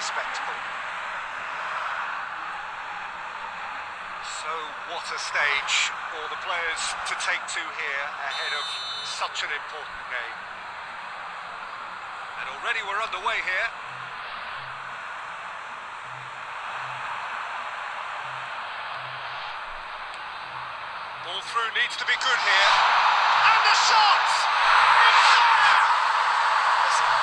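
A large stadium crowd cheers steadily and swells to a loud roar near the end.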